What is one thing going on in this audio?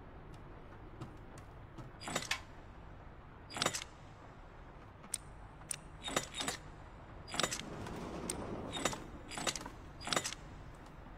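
Metal dials click and clunk as they turn.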